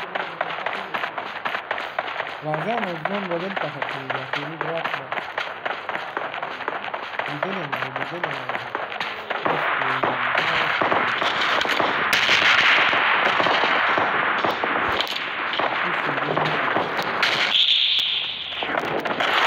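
Footsteps run on dirt and grass.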